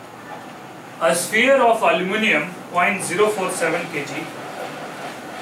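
A middle-aged man speaks in a lecturing tone.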